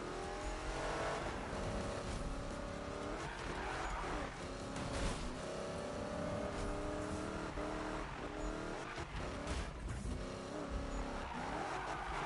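A race car engine roars loudly, revving up and down as gears shift.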